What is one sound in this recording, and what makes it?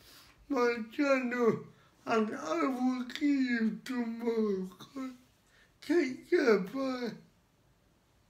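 A young man speaks with animation close by, his voice rising and straining.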